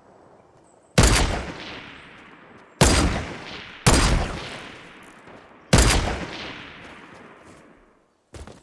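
Sniper rifle shots ring out and echo off into the distance.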